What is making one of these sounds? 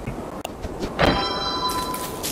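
A short bright chime rings.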